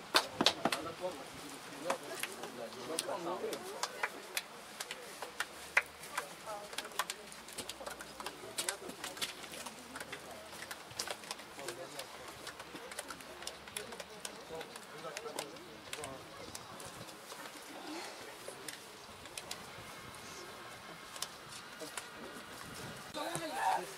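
Young men talk and call out nearby outdoors.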